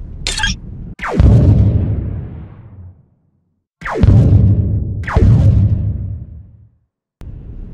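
Laser cannons fire with loud booming blasts that slowly fade.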